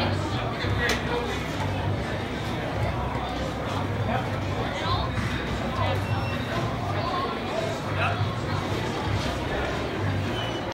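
A crowd of men and women chatters nearby in an echoing corridor.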